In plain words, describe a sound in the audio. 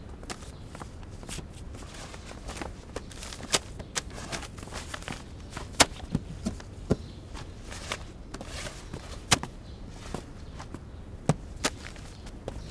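Items clatter and knock as they are handled.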